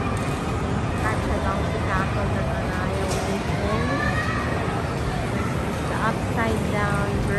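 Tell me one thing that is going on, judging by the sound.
Children shriek and squeal in the distance.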